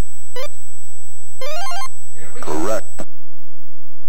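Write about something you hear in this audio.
A short electronic video game jingle plays.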